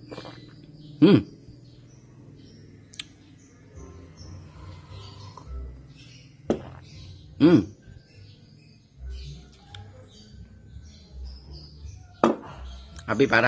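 A glass knocks and rings against a wooden table.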